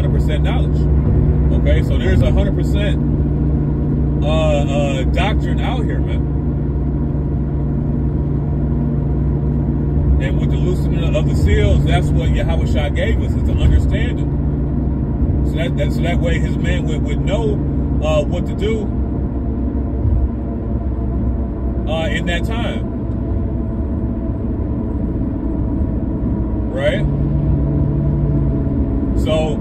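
A car engine hums steadily while driving on a highway.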